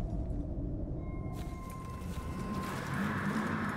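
A soft chime rings.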